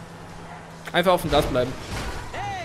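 A car crashes into another car with a thud.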